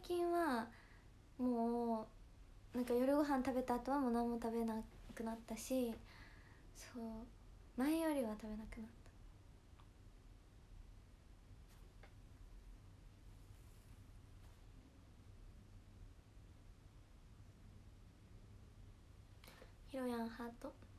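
A young woman talks casually and close to a microphone, with pauses.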